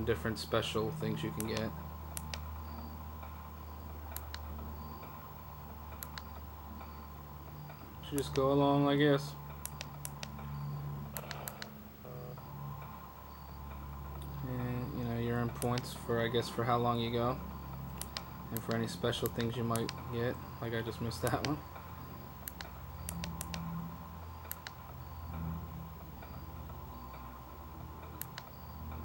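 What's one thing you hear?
Electronic game music plays with beeping tones.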